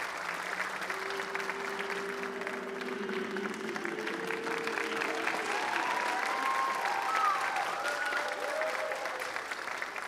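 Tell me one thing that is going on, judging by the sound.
Young men cheer and whoop loudly.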